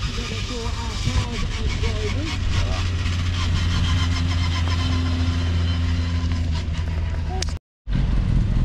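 A small racing car engine roars loudly as the car speeds past.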